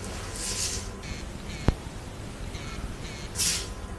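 A mobile phone rings with a ringtone.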